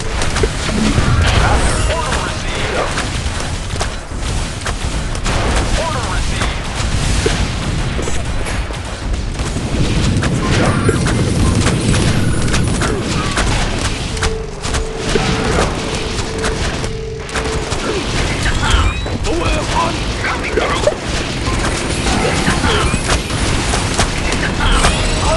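Game battle sounds of blasts and impacts go on throughout.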